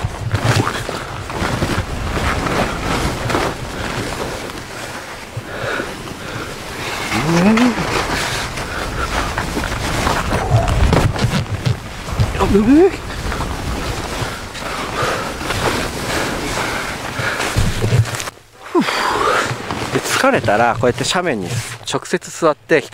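Skis hiss and scrape through soft snow.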